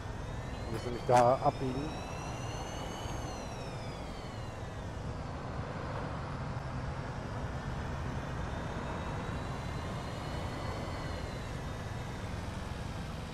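A bus motor whines steadily, rising and falling in pitch as the bus drives and turns.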